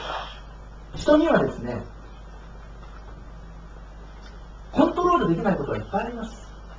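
A middle-aged man speaks slowly and calmly into a microphone, with pauses.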